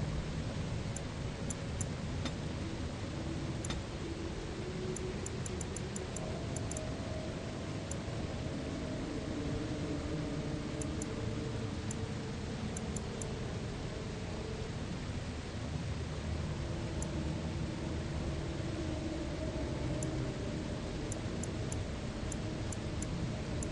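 Short soft clicks tick as menu selections change.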